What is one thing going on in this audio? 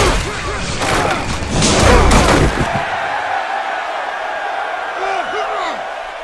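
Football players collide with heavy thuds.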